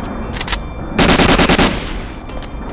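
A submachine gun fires a short rapid burst.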